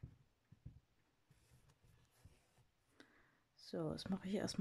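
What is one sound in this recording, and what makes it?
Thread rasps softly as it is pulled through stiff fabric.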